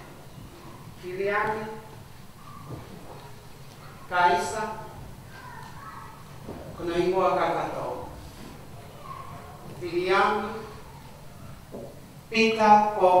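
A woman speaks slowly and with feeling into a microphone in a hall with some echo.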